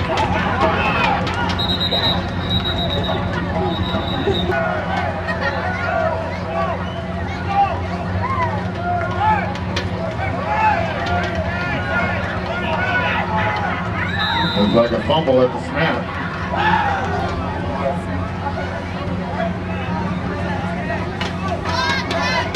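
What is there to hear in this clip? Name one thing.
Teenage players on the sideline shout and cheer outdoors.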